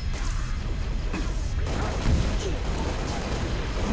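Explosions boom close by.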